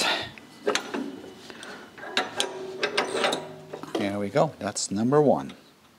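Metal parts clink as a pin is fitted into a hitch.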